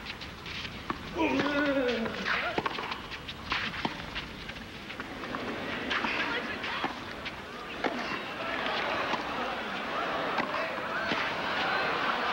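A tennis ball is struck sharply back and forth with rackets.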